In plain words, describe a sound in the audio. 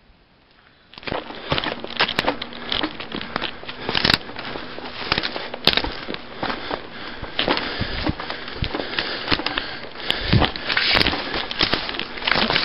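Footsteps crunch and rustle through dry brush close by.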